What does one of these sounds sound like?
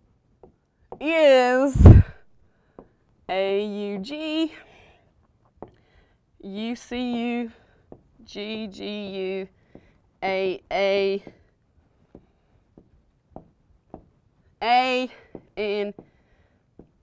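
A woman speaks calmly in short phrases, as if teaching.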